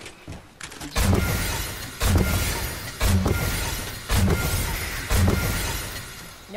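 A pickaxe swings and strikes with quick thuds.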